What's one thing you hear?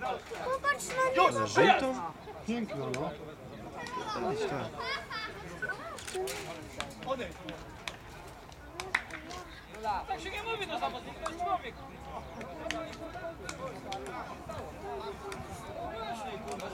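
Several men argue loudly outdoors.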